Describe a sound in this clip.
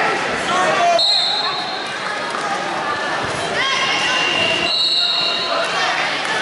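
A referee blows a whistle in short shrill blasts.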